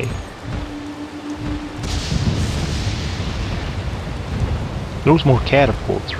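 Large wings flap with deep whooshes.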